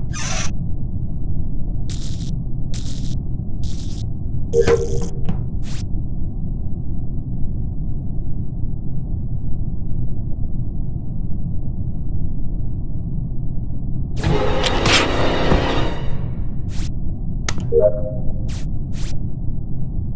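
Short clicks from game buttons being pressed.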